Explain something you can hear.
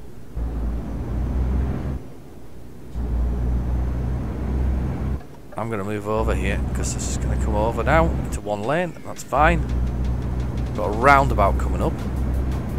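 A truck engine drones low and steady.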